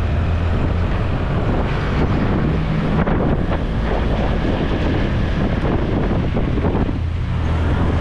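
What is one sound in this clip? A truck engine rumbles just ahead.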